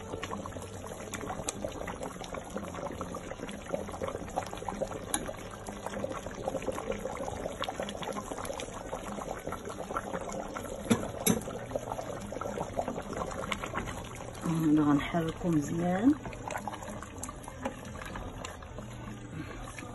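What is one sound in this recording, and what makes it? A ladle scrapes and clinks against a metal pot.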